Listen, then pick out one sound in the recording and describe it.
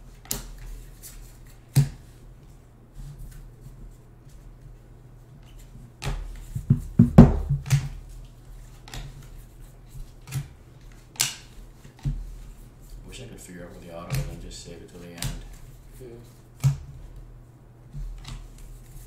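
Trading cards rustle and flick as hands sort through them.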